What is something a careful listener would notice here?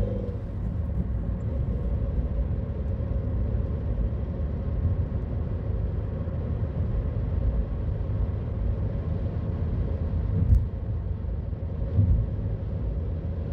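Tyres rumble over a rough paved road.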